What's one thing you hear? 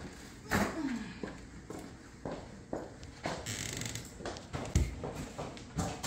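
A woman's footsteps tap on a hard floor.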